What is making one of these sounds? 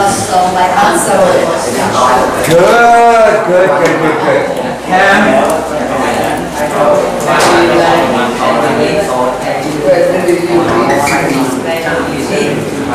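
An elderly man speaks clearly and steadily, explaining in a teaching manner close by.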